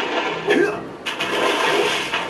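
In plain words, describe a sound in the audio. Water splashes as a game character plunges in.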